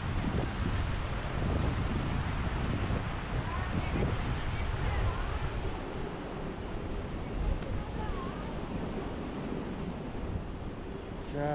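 Waves crash and wash against rocks.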